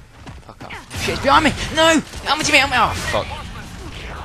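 A young man shouts loudly close to a microphone.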